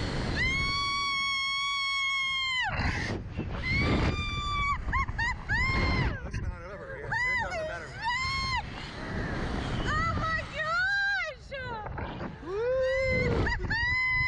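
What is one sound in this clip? A young woman screams loudly and repeatedly, close by.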